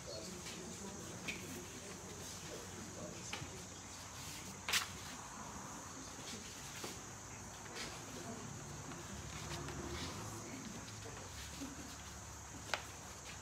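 An elderly woman speaks slowly and calmly into a microphone.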